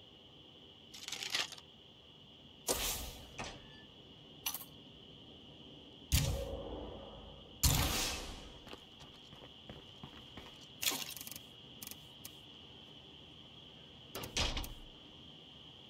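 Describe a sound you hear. Game menu sounds click and swish as selections change.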